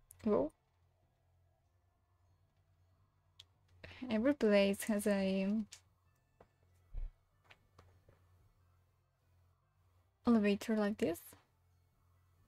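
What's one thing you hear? A young woman speaks with animation into a microphone, in short bursts.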